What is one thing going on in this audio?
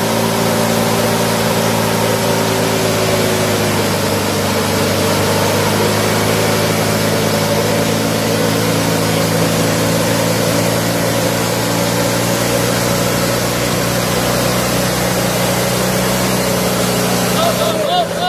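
An engine roars loudly and steadily, straining at low speed.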